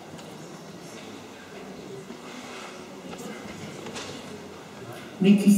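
A young boy speaks softly into a microphone.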